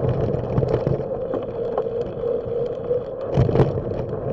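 Bicycle tyres roll smoothly over a bridge deck.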